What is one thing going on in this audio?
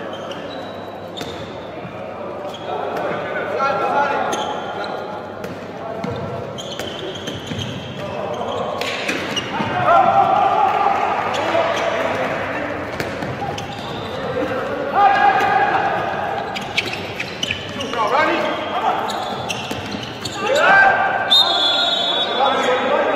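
A ball bounces repeatedly on a hard indoor floor.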